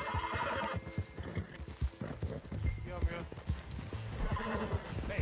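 A horse gallops, its hooves thudding on the ground.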